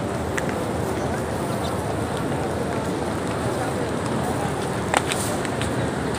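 A crowd murmurs in the open.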